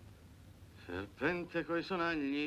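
A woman speaks nearby.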